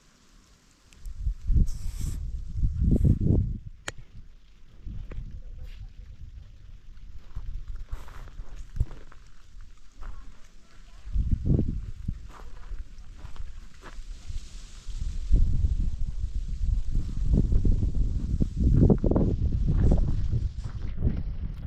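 Strong wind gusts and rumbles outdoors.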